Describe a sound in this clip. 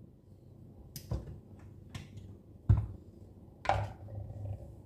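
A plastic lid clicks and clatters as it is taken off.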